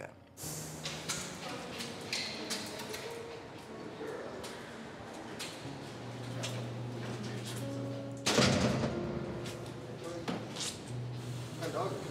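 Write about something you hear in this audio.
Footsteps tap along a hard floor.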